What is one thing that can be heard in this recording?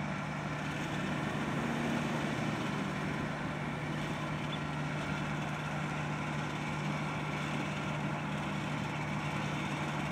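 A truck's diesel engine idles with a steady low hum.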